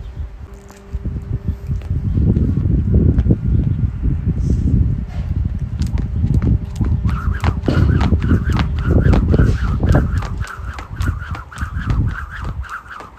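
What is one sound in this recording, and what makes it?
A skipping rope slaps the ground again and again.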